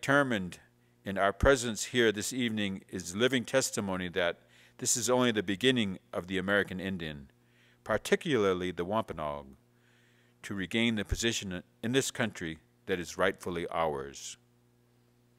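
An elderly man speaks calmly and steadily into a microphone, as if reading out.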